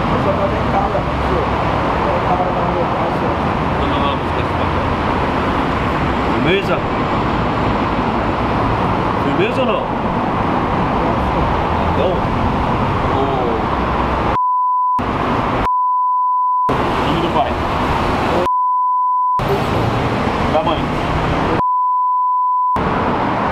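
A young man answers quietly.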